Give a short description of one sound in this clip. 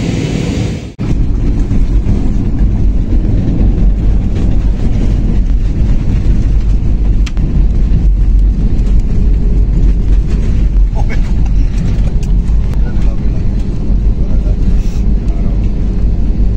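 An airliner's wheels rumble loudly along a runway.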